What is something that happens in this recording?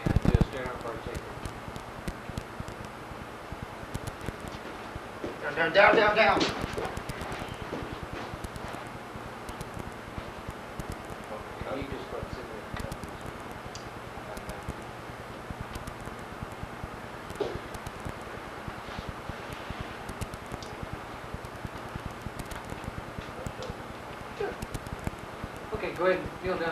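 A man speaks calmly and explains.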